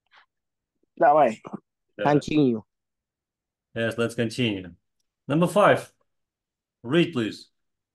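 A young man speaks calmly in short phrases, close to a microphone.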